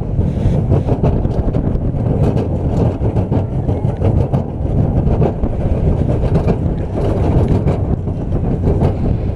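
Wind rushes loudly past a moving ride.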